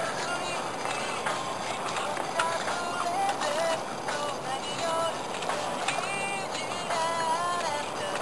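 A fish splashes at the water's surface close by.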